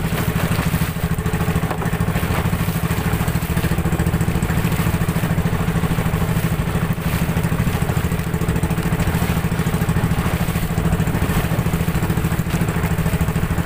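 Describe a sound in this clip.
Water splashes and rushes against the hull.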